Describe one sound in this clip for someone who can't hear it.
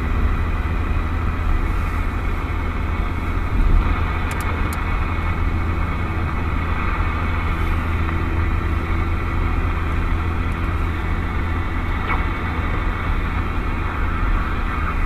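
Radio static hisses from a CB radio.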